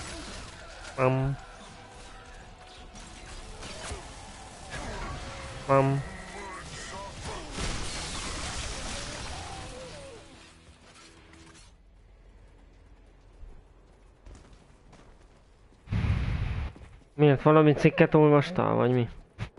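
A young man talks with animation through a headset microphone.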